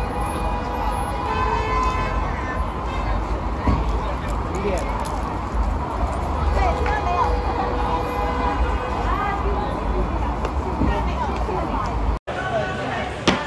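A crowd of men and women chatters at a distance outdoors.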